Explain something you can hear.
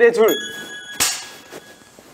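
A clapperboard snaps shut with a sharp clack.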